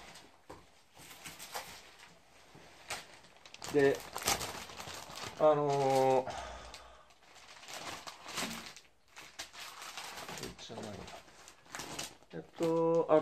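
A newspaper rustles and crinkles as it is handled.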